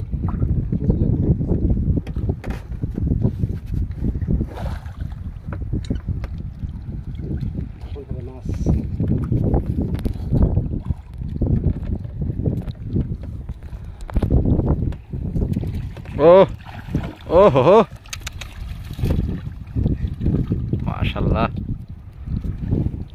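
Water splashes and sloshes as a person wades and lifts a net trap.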